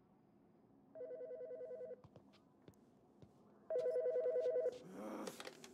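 A telephone rings in short electronic trills.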